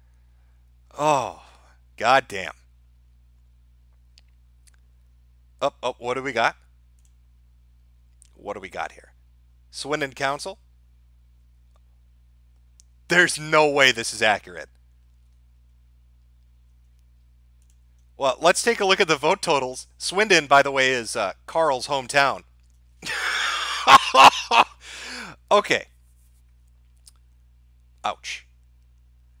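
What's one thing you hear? A man speaks through a microphone in short bursts with pauses.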